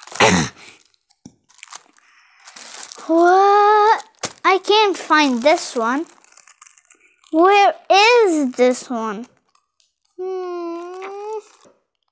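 Plastic packaging rustles and clicks as a toy is handled.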